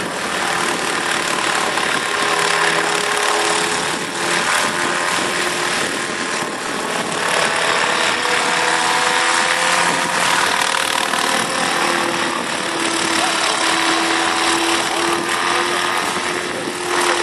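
A model helicopter's engine whines steadily overhead.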